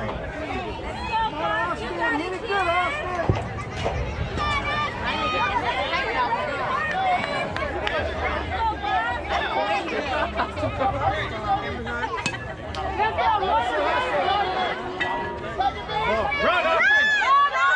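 A crowd of adults and children cheers and shouts nearby, outdoors.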